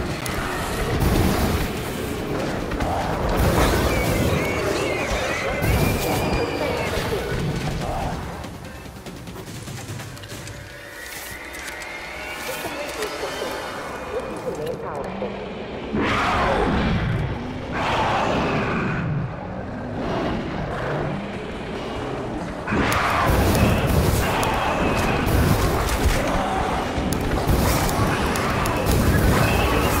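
Fire crackles and burns.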